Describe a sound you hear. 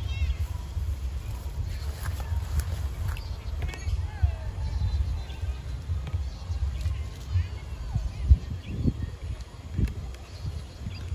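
Wind rumbles and buffets against the microphone outdoors.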